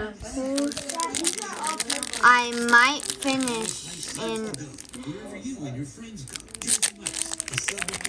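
A foil pack tears open.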